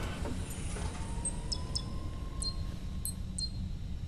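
Fingers tap on a console's keys.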